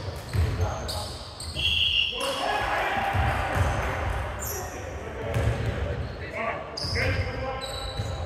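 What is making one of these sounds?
A basketball bounces on a hard court with echoing thuds.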